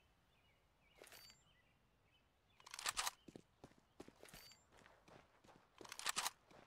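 A handheld tablet clicks and beeps as it is raised.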